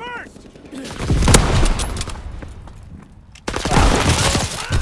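A sniper rifle fires with a loud, sharp crack.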